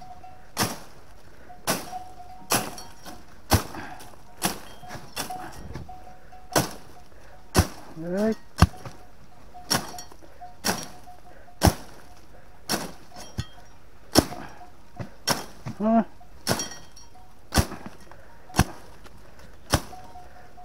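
A machete chops repeatedly into dry bamboo stems with sharp thwacks.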